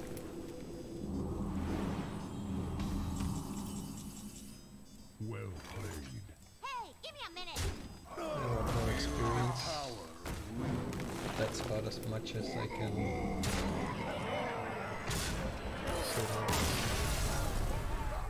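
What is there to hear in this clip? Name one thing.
Explosions boom from a card game's attacks.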